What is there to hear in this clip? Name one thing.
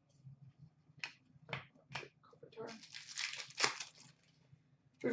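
Trading cards rustle and slap against each other as they are sorted by hand.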